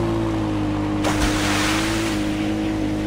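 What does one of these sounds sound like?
Water splashes under the quad bike's wheels.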